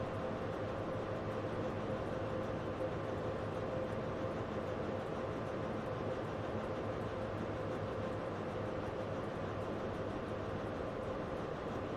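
A train engine rumbles and hums steadily nearby.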